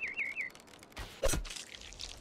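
A weapon swings and strikes with a heavy thud.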